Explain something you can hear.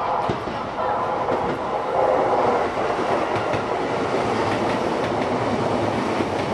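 A train rolls past close by with a loud steady rumble.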